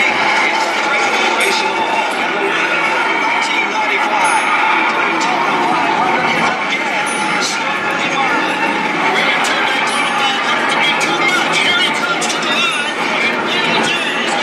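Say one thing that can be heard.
Race car engines roar as a pack of cars speeds past.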